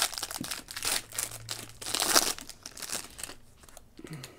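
A foil pack crinkles and tears as hands open it.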